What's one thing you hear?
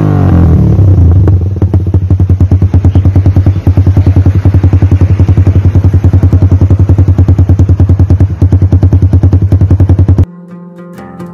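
A motorcycle exhaust idles with a rapid, loud popping.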